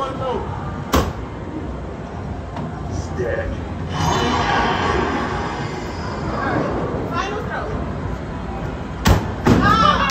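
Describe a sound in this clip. A toy axe thumps sharply against an arcade target.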